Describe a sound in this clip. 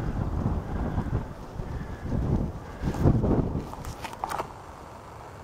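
Wind blows across the open outdoors, rumbling now and then.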